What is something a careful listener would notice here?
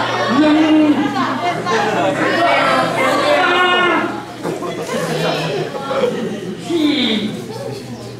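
A man speaks with animation into a microphone, heard through loudspeakers in a large hall.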